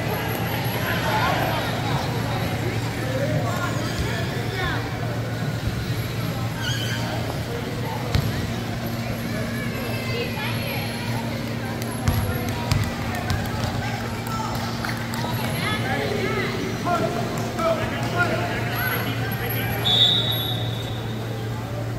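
Several people chatter and call out, echoing in a large hall.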